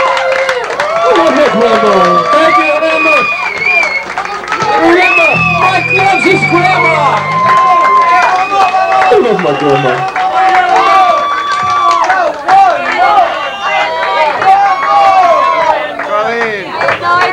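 A harmonica wails loudly in a live band.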